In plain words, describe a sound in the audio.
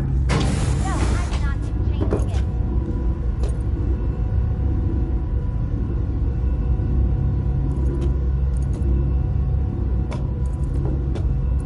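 An elevator hums steadily as it rides.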